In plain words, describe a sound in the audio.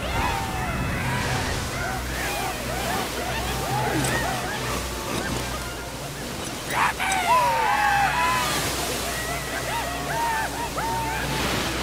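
Creatures rush through sand with a rumbling hiss.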